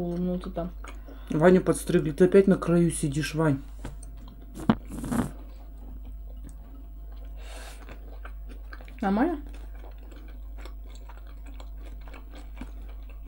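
A boy chews and crunches food.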